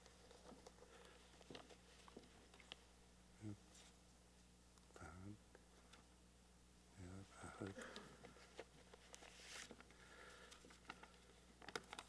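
Papers rustle and knock against a microphone.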